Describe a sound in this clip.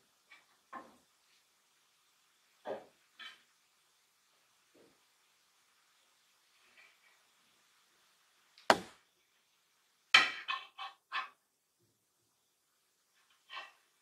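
Hands handle a wire hoop with string, making short knocks and rustles.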